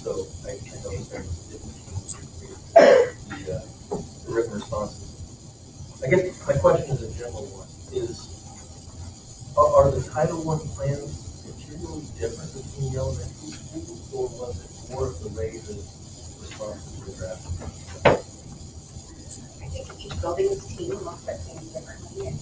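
A man speaks into a microphone in a room with a slight echo.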